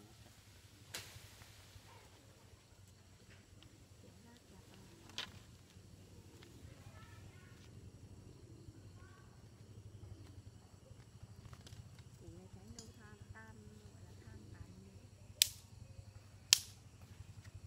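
A young man snaps dry sticks.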